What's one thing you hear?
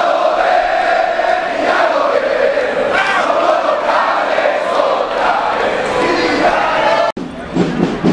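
A large crowd chants loudly in a big echoing space.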